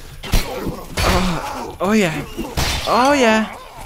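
A blade whooshes through the air.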